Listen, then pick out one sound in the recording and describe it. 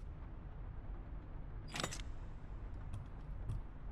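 A mechanical dial lock clicks as it turns.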